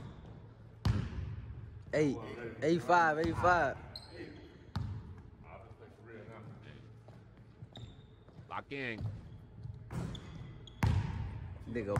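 A basketball bounces on a wooden court floor.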